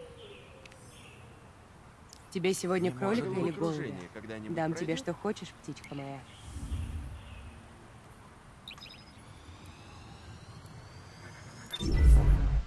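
Soft electronic menu clicks and chimes sound as options are selected.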